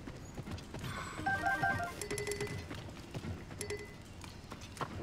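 Short bright chimes ring out as items are picked up.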